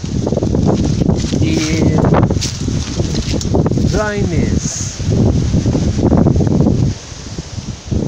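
Footsteps crunch through dry leaves and twigs.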